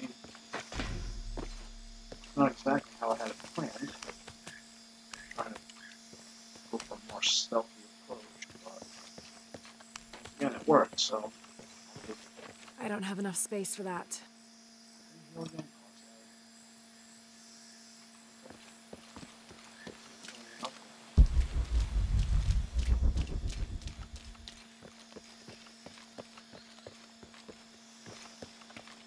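Footsteps run over stone and undergrowth.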